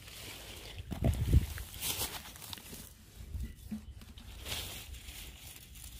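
A strawberry drops into a plastic bowl with a soft thud.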